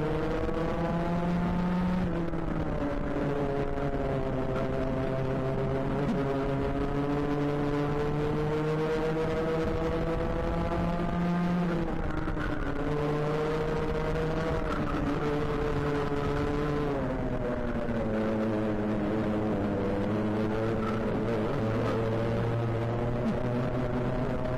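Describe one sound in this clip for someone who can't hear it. A kart engine buzzes loudly up close, its pitch rising and falling with the throttle.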